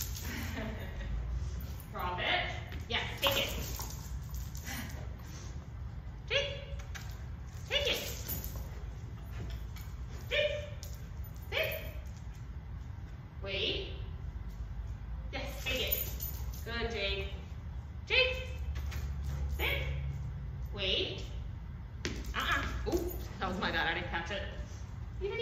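A young woman talks to a dog in short, lively bursts close by.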